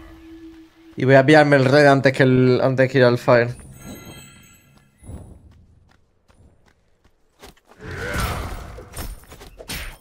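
A young man talks through a microphone.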